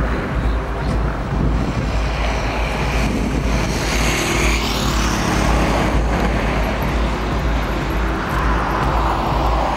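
Footsteps scuff along a pavement.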